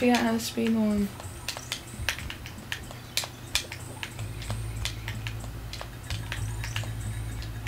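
Video game music plays with a steady low beat.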